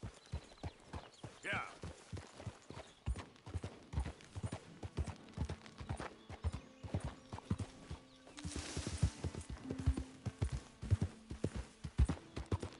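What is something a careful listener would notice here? Horse hooves clop steadily on a dirt path.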